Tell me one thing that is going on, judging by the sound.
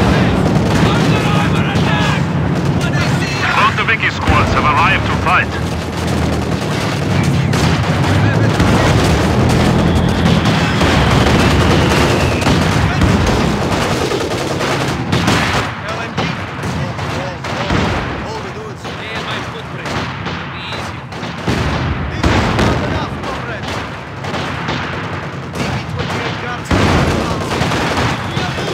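Rifles and machine guns fire in rapid bursts.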